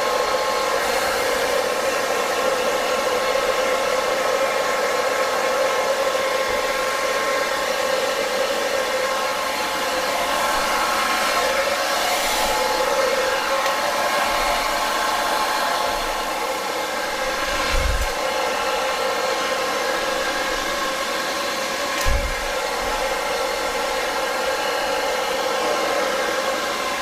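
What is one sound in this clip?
A hair dryer blows with a steady whirring roar.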